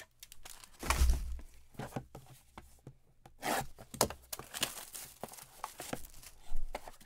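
Gloved hands rustle and handle plastic-wrapped trading cards close by.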